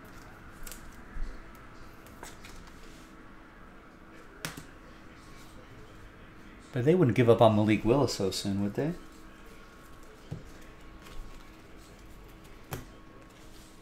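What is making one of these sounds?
Trading cards rustle and click as hands shuffle through them.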